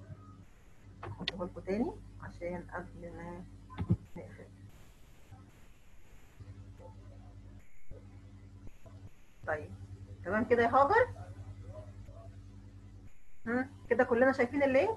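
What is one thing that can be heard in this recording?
A young woman speaks calmly into a headset microphone over an online call.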